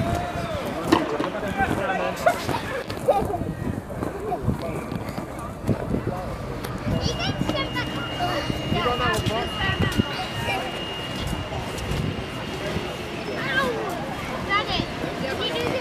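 Young girls shout and squeal with excitement outdoors.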